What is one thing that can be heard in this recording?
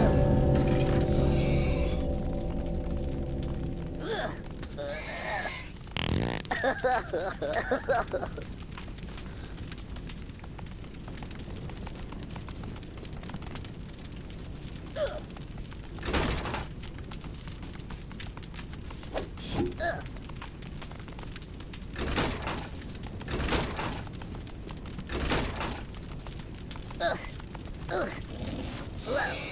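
Small footsteps patter on a walkway.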